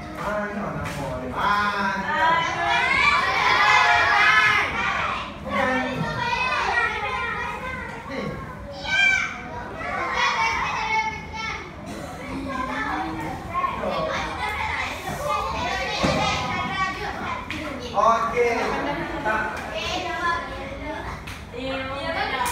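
Children talk and call out over one another in an echoing room.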